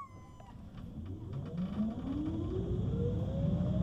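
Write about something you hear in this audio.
A tram's motor whines, rising steadily in pitch.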